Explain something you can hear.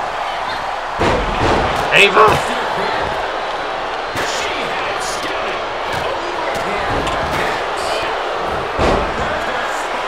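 Bodies slam heavily onto a wrestling ring.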